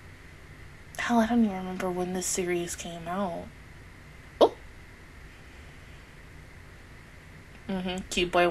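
A young woman sings softly into a close microphone.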